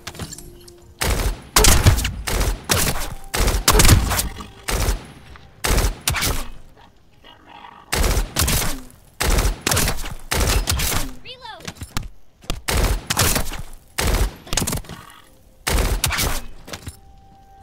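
Gunshots and heavy impacts boom in quick bursts.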